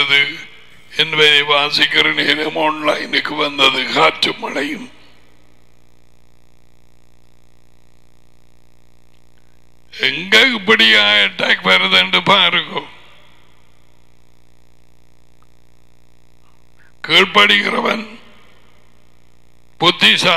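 An elderly man speaks calmly and clearly into a close headset microphone, in short bursts with pauses.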